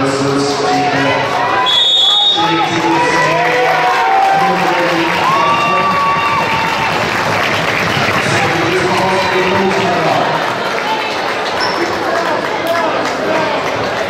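A crowd in a large echoing gym cheers and chatters.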